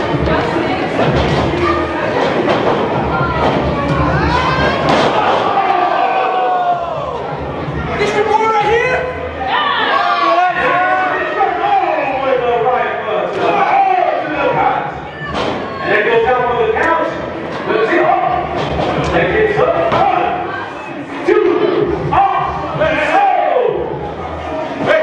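A crowd of spectators cheers and shouts loudly in an echoing hall.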